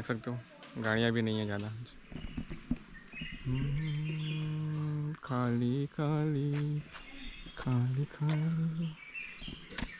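A young man speaks calmly and close to the microphone.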